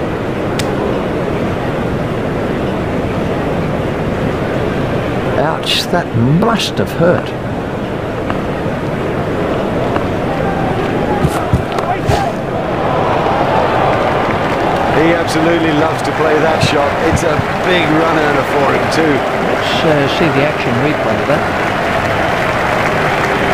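A large crowd roars steadily.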